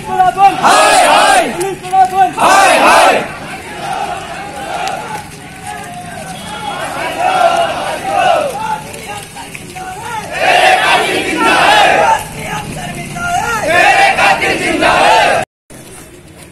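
A crowd of men chant slogans loudly outdoors.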